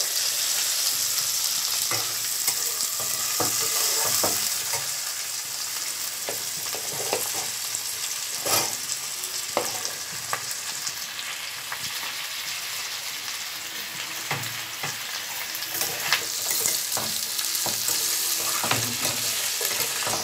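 Oil sizzles steadily in a hot pan.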